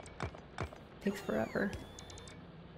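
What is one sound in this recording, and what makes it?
A young woman speaks briefly and calmly into a microphone.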